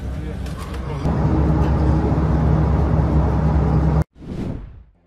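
A bus engine hums and rumbles as it drives along a road.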